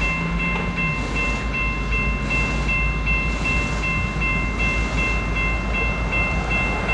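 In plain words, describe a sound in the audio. A locomotive bell rings over and over at an even pace.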